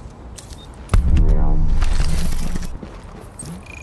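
A deep falling tone booms as a task is completed.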